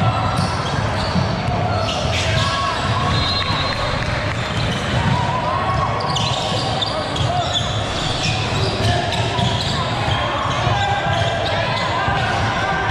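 Spectators talk and call out in the stands.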